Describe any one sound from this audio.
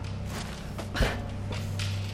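A loud thud sounds.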